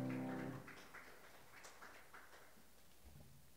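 Music with a piano in a large hall comes to an end and echoes away.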